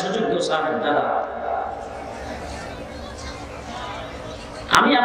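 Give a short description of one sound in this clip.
An elderly man speaks with feeling into a microphone, heard through loudspeakers with some echo.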